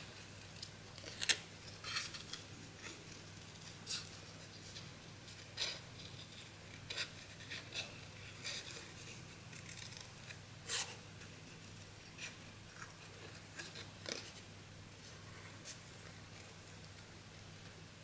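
Paper crinkles and rustles as it is handled and folded.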